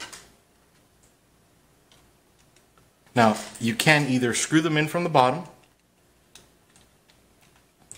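A screwdriver turns a screw into metal with faint clicks.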